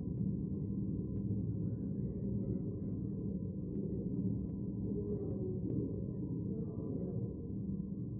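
A crowd of men and women murmur quietly in a large echoing hall.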